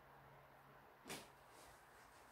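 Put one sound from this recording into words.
A paintbrush is set down with a light knock.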